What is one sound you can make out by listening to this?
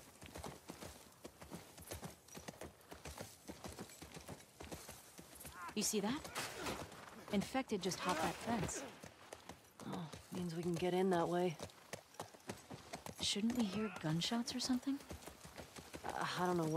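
Horse hooves thud steadily on the ground.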